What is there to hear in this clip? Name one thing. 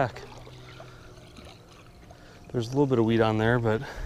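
A fishing reel whirs as line is reeled in.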